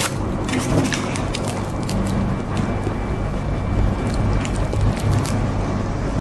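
A young woman bites and crunches on a chocolate-coated ice cream cone.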